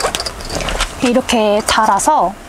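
A young woman speaks in a casual, lively way close by.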